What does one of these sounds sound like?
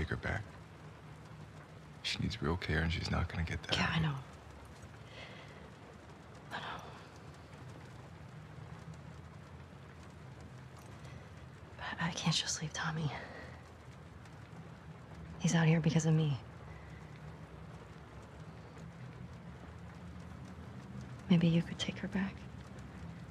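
A young man speaks quietly and earnestly.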